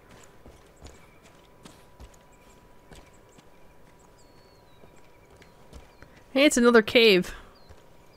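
Footsteps tread on stone steps.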